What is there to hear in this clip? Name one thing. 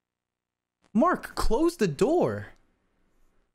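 A young man exclaims with animation, close to a microphone.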